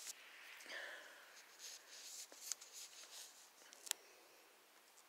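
A small dog shifts on a soft blanket with a quiet rustle.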